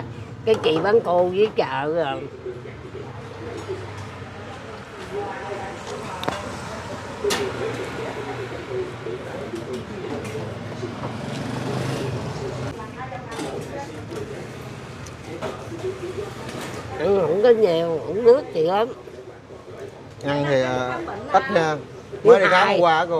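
An older woman talks calmly and close up, heard through a clip-on microphone.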